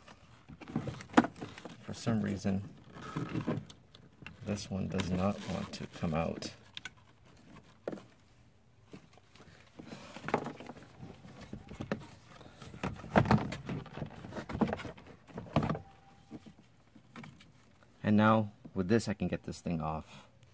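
Hard plastic parts rattle and knock as they are handled.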